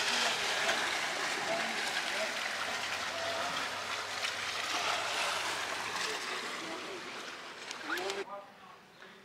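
Sea waves wash and splash against rocks, outdoors in wind.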